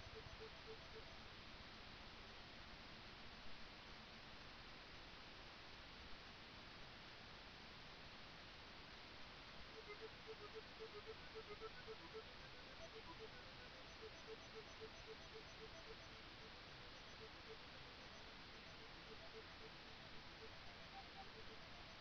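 Retro video game gunfire blips in quick, repeated bursts.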